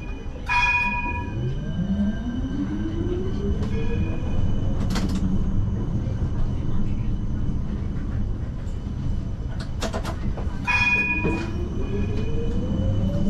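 Tram wheels rumble steadily on the rails.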